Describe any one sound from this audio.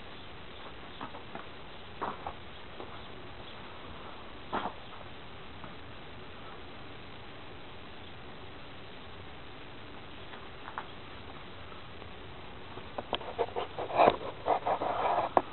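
Burning fabric crackles and pops.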